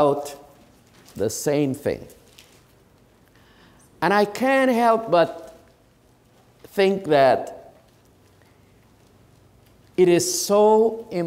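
An elderly man speaks with animation through a microphone, in short phrases with pauses.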